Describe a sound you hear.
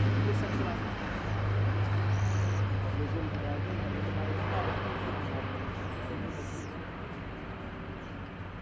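Propeller engines drone loudly and steadily, slowly fading.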